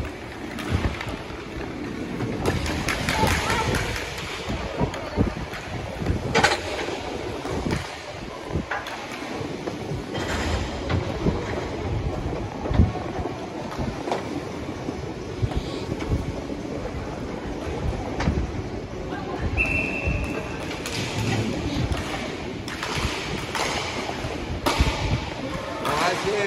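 Skate wheels roll and scrape across a hard floor.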